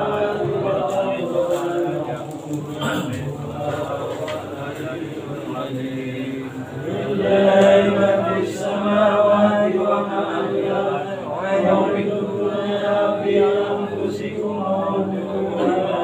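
A group of men chant together in unison nearby.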